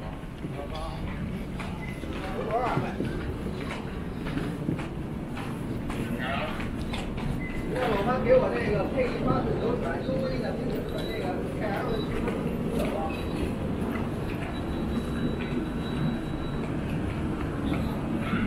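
Voices of a crowd murmur in a large echoing hall.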